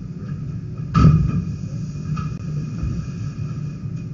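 A plastic sheet rustles and thumps as a heavy load is dragged across a table.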